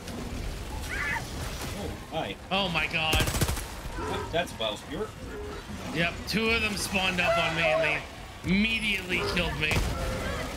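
A man talks with animation, heard closely through a microphone.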